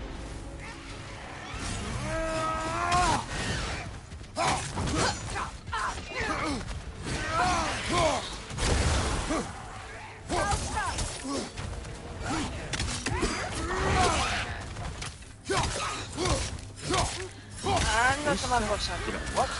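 Heavy weapon blows strike and clash in a fight.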